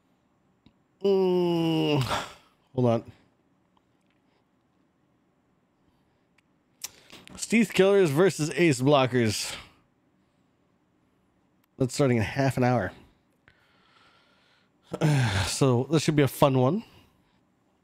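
A man talks into a close microphone with animation, in short bursts.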